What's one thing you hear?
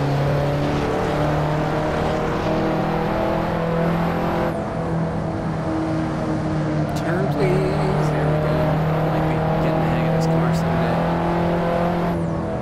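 A car engine hums steadily at high revs.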